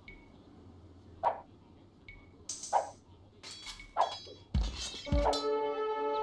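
Swords clash and clang as soldiers fight.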